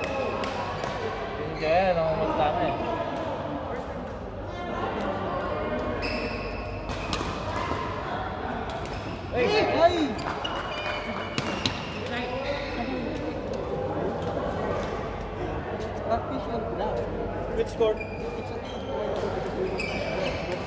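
Sneakers squeak on the hard court floor.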